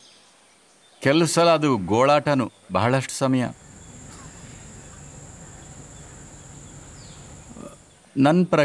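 An elderly man speaks calmly and slowly into a close microphone, with pauses.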